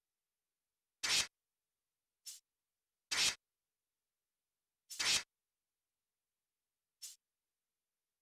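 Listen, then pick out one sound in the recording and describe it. Short whooshing menu sounds play several times.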